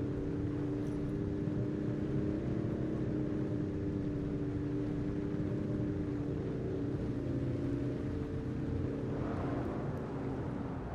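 A car engine hums steadily as it drives along.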